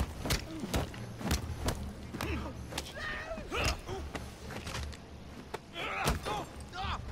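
Punches land with sharp thuds in a brawl.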